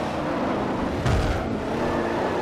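Cars bump and scrape against each other.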